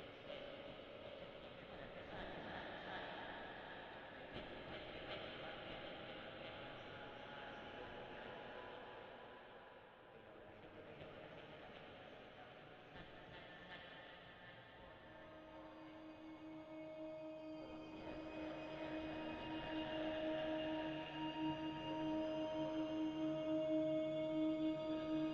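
Electronic synthesizer music plays, swelling into sustained drones.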